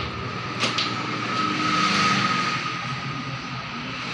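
A cabinet door creaks open.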